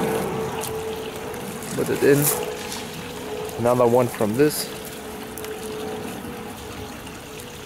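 Fish splash at the water's surface.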